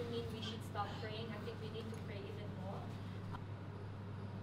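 Teenagers chatter and move about.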